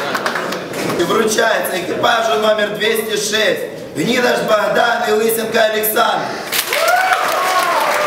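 A young man reads out loudly.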